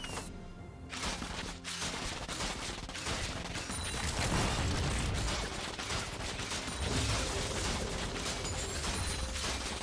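Game spell blasts and weapon hits crackle and thud in a busy fight.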